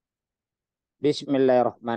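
A man speaks into a microphone close up.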